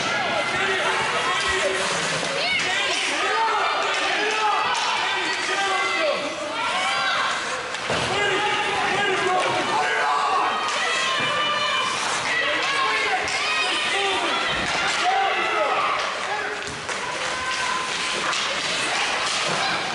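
Ice skates scrape across the ice.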